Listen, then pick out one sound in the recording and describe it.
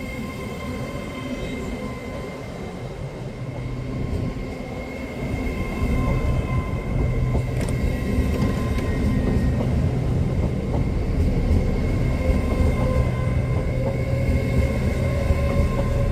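Train wheels squeal and hum steadily on the rails.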